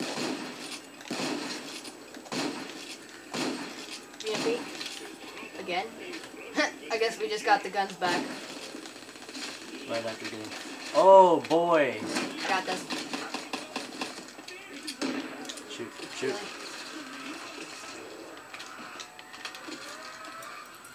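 Video game gunfire rattles from a television speaker.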